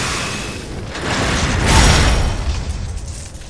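A burst of magic explodes with a loud crackling blast.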